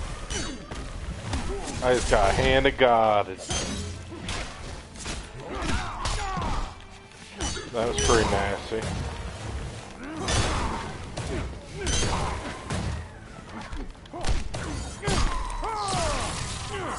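Punches and kicks land with heavy thuds in a fast fight.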